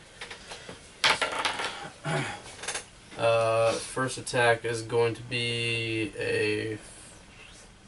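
A young man talks animatedly close by.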